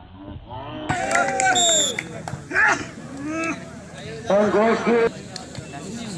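Young men shout loudly during play.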